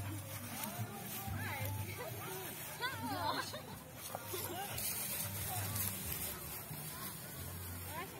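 Puppies growl playfully.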